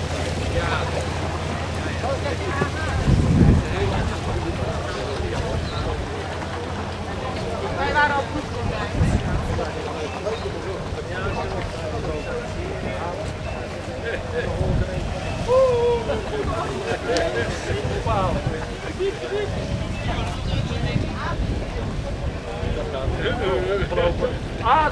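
A group of men and women talk and laugh nearby outdoors.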